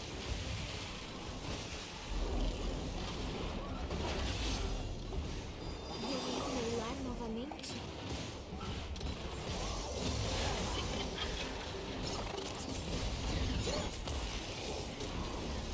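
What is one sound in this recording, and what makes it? Spell effects crackle and burst in a fast game battle.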